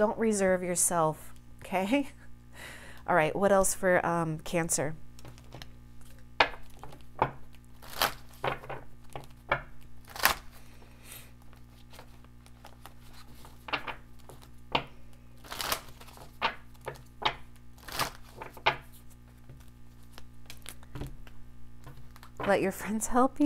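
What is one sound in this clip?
Cards are shuffled and tapped down on a table with soft clicks.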